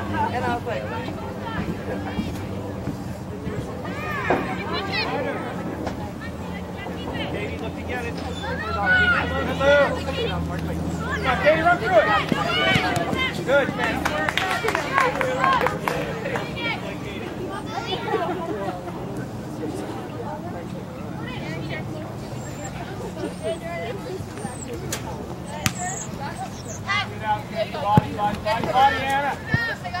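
Young women shout and call to each other outdoors.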